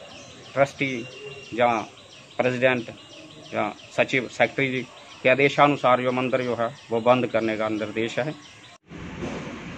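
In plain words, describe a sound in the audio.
A middle-aged man speaks into a microphone up close, calmly and earnestly.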